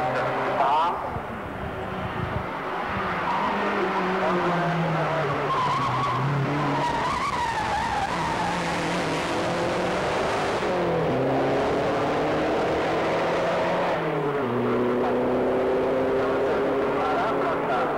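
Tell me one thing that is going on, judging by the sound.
A racing car engine roars at high revs, climbing in pitch and dropping with each gear change.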